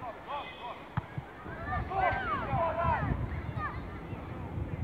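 Children shout to each other across an open outdoor field.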